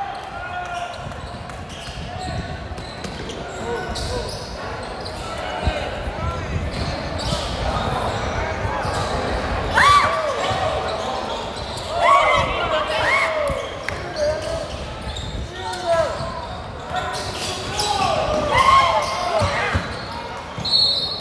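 A crowd of onlookers murmurs and chatters in the background.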